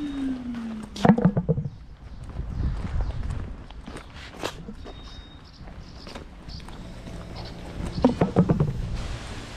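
A plastic traffic cone knocks against paving stones.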